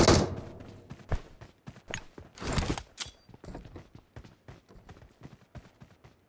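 Footsteps thud quickly over the ground.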